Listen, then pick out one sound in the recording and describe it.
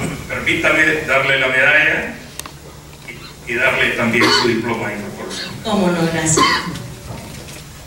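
A middle-aged woman speaks with animation into a microphone in an echoing hall.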